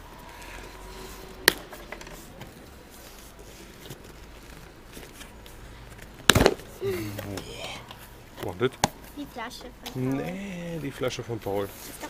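Cardboard rustles and scrapes as a box is opened by hand.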